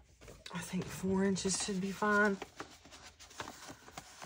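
Paper rustles and scrapes as it is handled.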